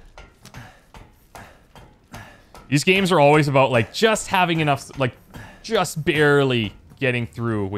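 Hands and boots knock on ladder rungs during a climb.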